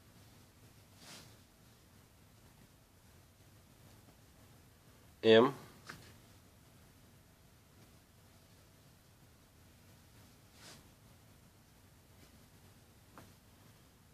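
Cloth rustles softly as garments are handled and laid down.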